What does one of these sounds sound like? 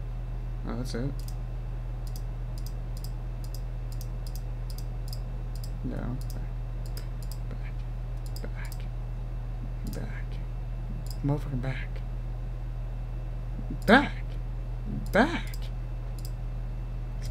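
Soft clicks tick again and again as menu buttons are pressed.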